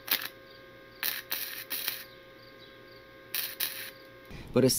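An electric welding arc crackles and hisses in short bursts.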